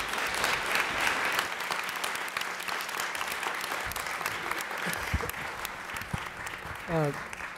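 An audience applauds in a large room.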